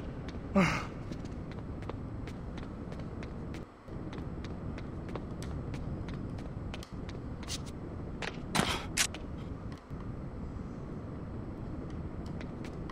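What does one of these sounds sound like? Footsteps run across a tiled floor.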